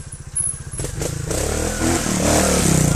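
A motorcycle engine revs as it climbs over rocks.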